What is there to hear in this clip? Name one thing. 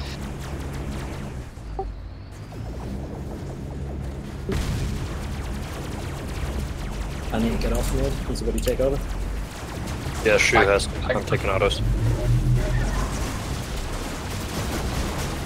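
A robot's engine hums with a low, steady drone.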